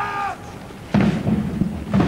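Soldiers' boots stamp on the ground in unison.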